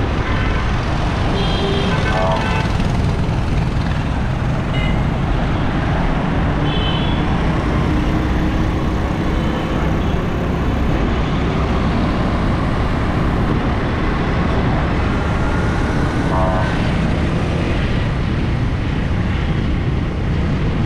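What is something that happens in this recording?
Motorbike engines buzz and putter close by in busy traffic.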